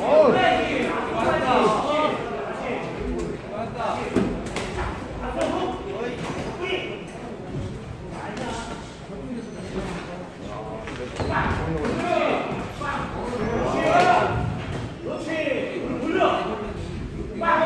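Men shout with animation from ringside.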